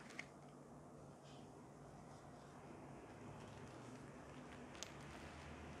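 Small plastic parts click sharply a couple of times.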